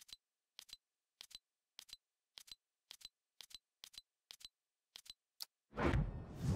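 Short menu ticks click in a quick, even rhythm as items scroll past.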